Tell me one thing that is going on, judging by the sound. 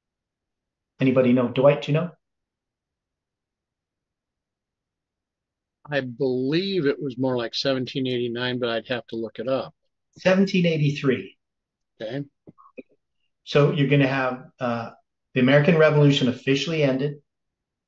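An elderly man talks calmly and thoughtfully, close to a microphone, with long pauses.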